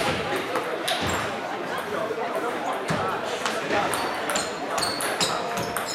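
Ping pong balls click on other tables around a busy indoor hall.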